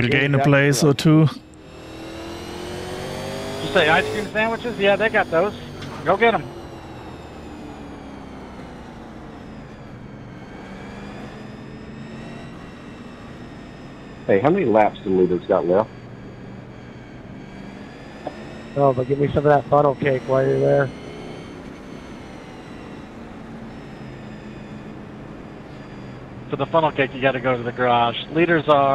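A race car engine drones steadily, its pitch rising and falling slightly.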